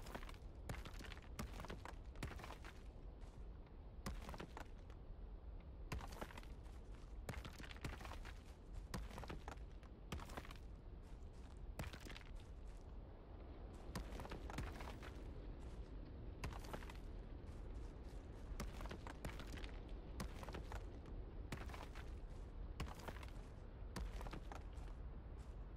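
A sledgehammer strikes stone and metal again and again with sharp knocks.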